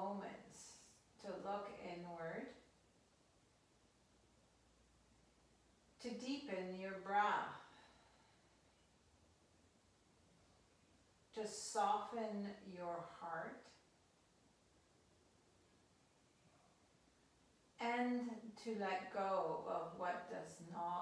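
A woman speaks calmly in short phrases with pauses between them.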